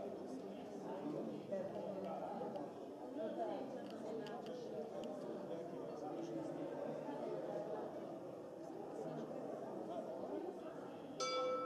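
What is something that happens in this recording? A crowd of people chatter at a distance outdoors.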